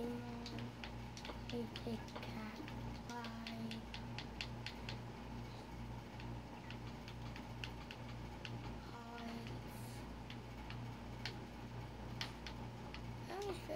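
Buttons on a game controller click quickly and softly.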